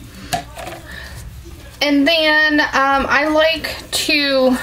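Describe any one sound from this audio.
A spatula scrapes and stirs soft lumps in a plastic bowl.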